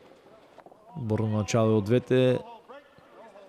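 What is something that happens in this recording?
A man speaks loudly, giving short instructions in a large echoing hall.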